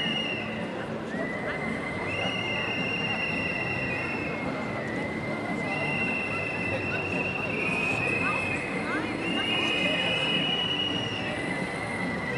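A crowd of men and women murmurs and chatters at a distance outdoors.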